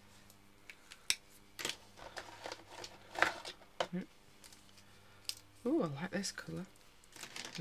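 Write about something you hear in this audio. Plastic markers click and rattle as they are handled.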